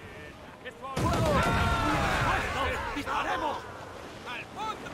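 Cannons boom.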